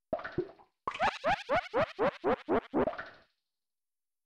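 Quick, high electronic blips chirp in a rapid run.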